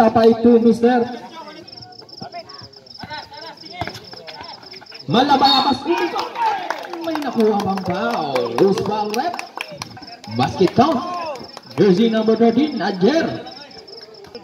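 Young men shout and cheer loudly close by, outdoors.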